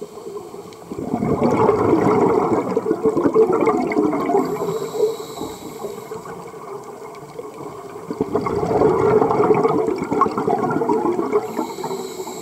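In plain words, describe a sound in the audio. A scuba diver exhales through a regulator underwater, with bubbles rumbling and gurgling.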